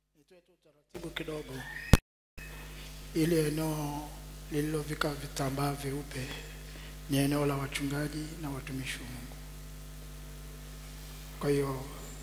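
A man preaches with animation through a microphone in a large echoing hall.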